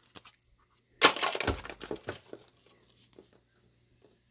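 A plastic wrapper crinkles as it is handled.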